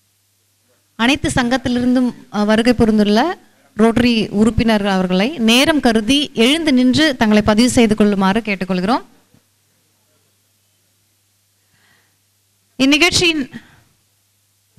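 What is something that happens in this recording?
A man speaks loudly and with animation through a loudspeaker.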